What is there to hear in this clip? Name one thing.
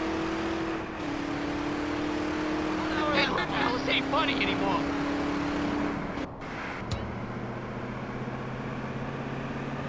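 A car engine hums steadily while driving.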